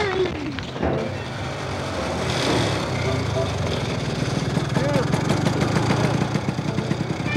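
A snowmobile engine rumbles and putters.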